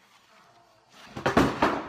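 Cardboard scrapes and rustles loudly close by.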